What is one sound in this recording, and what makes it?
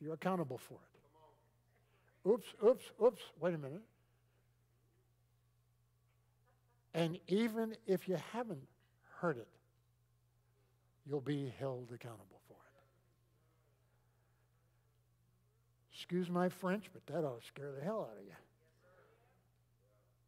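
An older man speaks with animation through a microphone, pausing between phrases.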